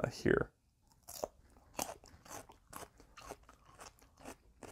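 A young man crunches and chews a pickle.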